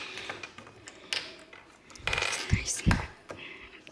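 Plastic pieces clack onto a hard tabletop.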